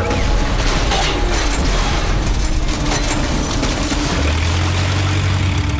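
Fire roars.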